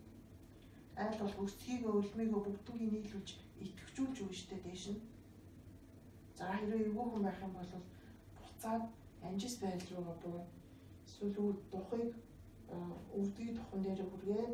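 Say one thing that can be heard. A young woman speaks calmly and steadily.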